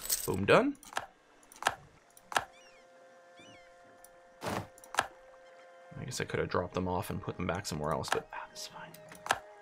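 Short interface clicks sound as game message windows open and close.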